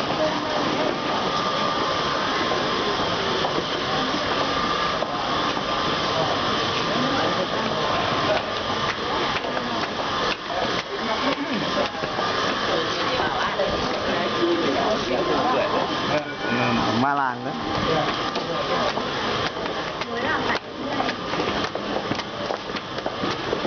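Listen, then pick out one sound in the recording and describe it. A crowd of men and women chatter close by throughout.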